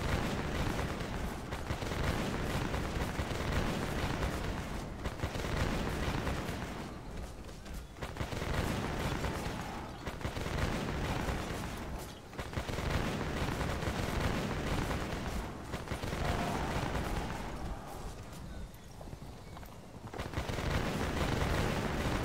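Muskets fire in crackling volleys.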